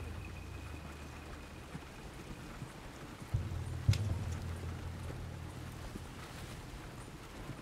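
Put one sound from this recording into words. Horse hooves clop on the dirt.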